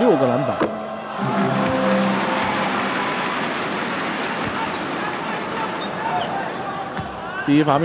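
A large crowd cheers loudly after a free throw.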